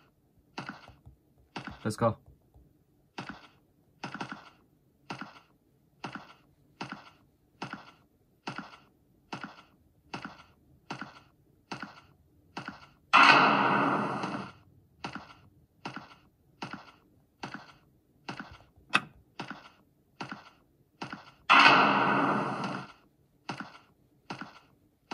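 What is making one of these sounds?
Footsteps from a video game thud at a steady walking pace through a small tablet speaker.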